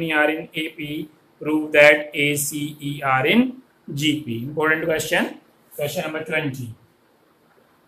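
A man speaks calmly and closely, explaining.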